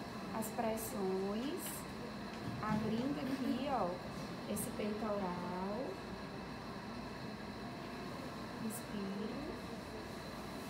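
A woman speaks calmly close by, pausing between phrases.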